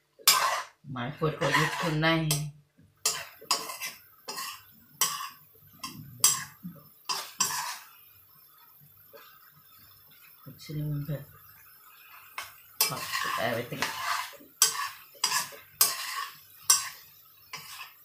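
A metal spatula scrapes and clatters against a wok as food is stirred.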